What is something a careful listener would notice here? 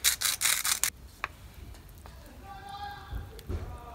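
A wooden spoon stirs and scrapes in a metal pot.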